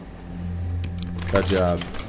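A wooden door handle rattles as it is pulled.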